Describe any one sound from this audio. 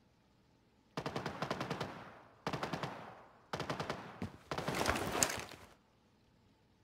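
Automatic gunfire rattles in short, rapid bursts that echo away.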